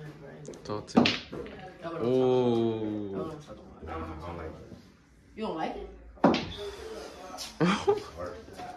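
Billiard balls clack together as a cue strikes.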